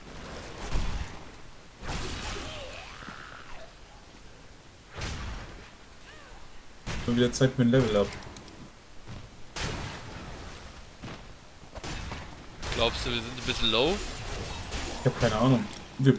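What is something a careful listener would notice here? Magic spells whoosh and crackle.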